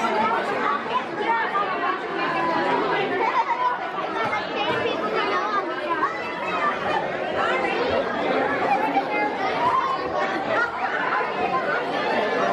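A crowd of men, women and children chatters loudly all around, close by, in a busy indoor room.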